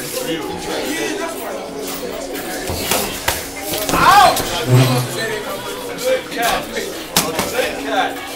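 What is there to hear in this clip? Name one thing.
Boxing gloves thud against pads and a body.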